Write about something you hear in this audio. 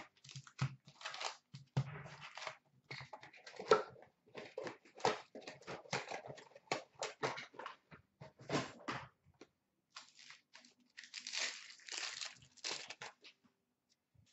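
Card packs rustle and tap.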